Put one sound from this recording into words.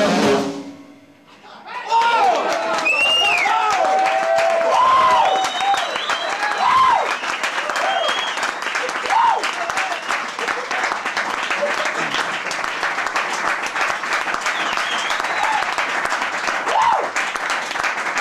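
A saxophone plays a wailing, bending line.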